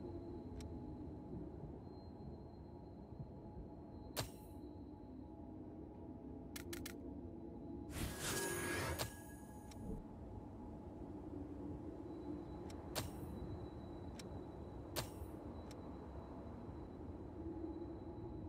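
Soft menu clicks sound now and then.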